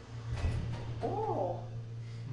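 An elevator chime dings once.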